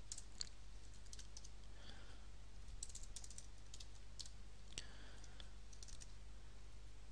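Keys on a computer keyboard click as someone types.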